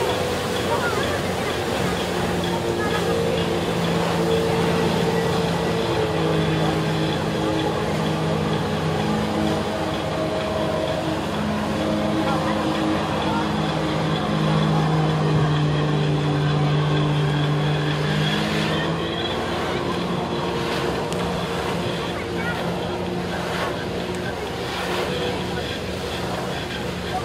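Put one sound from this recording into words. A personal watercraft engine revs hard under load.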